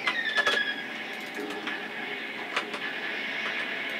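A loud explosion booms in a video game.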